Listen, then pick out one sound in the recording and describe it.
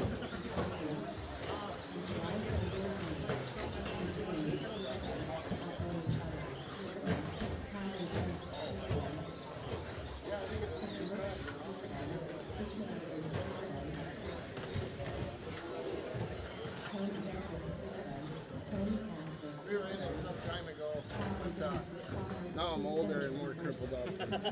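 Men talk and chatter nearby in a large echoing room.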